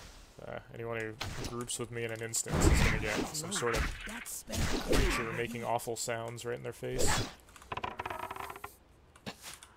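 Weapon blows strike in a fight.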